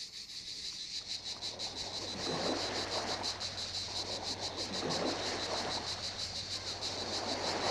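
Sea waves wash gently onto the shore.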